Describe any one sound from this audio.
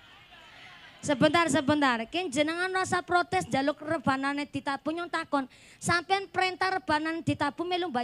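A young woman speaks with animation through a loudspeaker.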